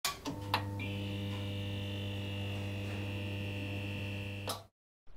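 A neon sign buzzes with a steady electric hum.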